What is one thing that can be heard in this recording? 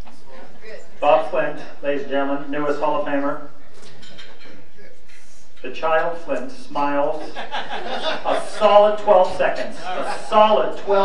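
A man speaks through a microphone and loudspeakers, addressing a room with animation.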